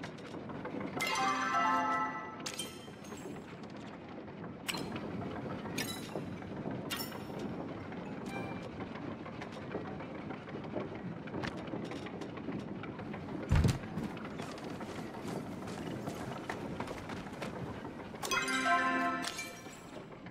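A bright chime rings.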